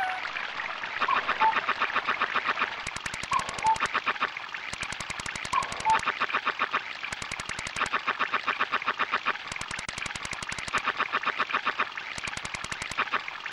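A video game fishing reel winds with rapid electronic clicking in bursts.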